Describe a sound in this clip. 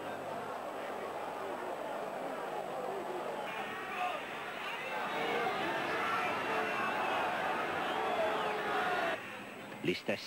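A stadium crowd cheers and roars.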